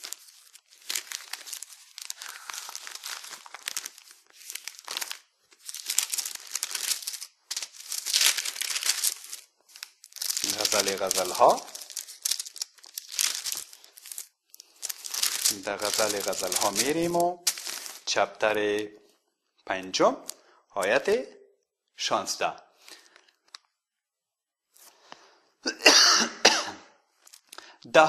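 Book pages rustle as a man turns them.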